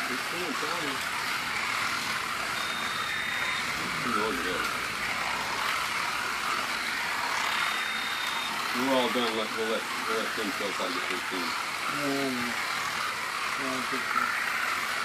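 Men talk nearby in casual voices.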